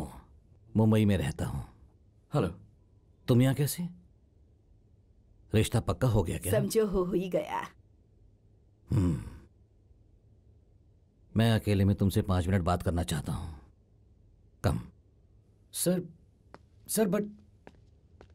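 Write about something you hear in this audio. A young man speaks calmly, close by.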